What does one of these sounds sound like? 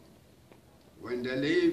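A man speaks calmly in a room.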